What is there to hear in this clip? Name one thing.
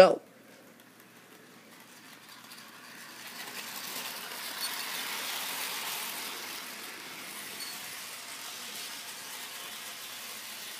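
A toy train rolls along plastic track with a whirring motor.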